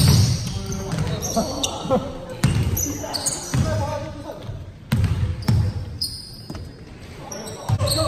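A basketball bounces with dull thumps in a large echoing hall.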